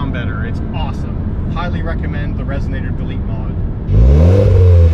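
A man talks calmly and close by inside a car.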